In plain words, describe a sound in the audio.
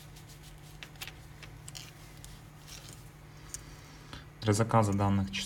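Fabric rustles softly as a wrist turns.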